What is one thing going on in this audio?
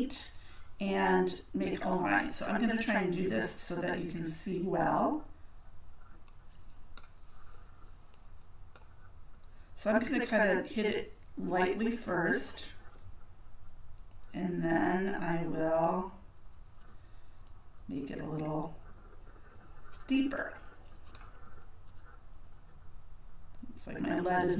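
A woman talks calmly into a nearby microphone, pausing between phrases.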